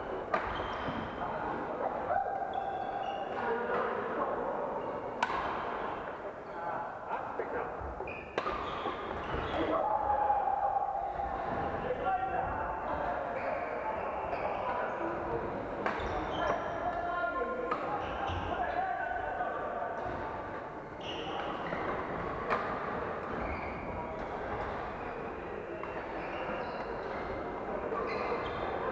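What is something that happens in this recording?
Men and women call out and chatter in an echoing hall.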